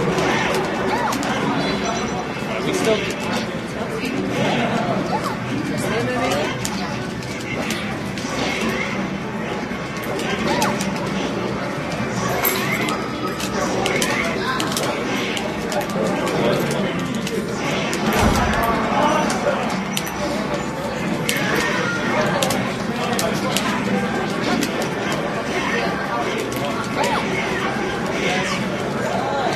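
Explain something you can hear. Arcade-style fighting sound effects of hits, blasts and whooshes play rapidly through a television speaker.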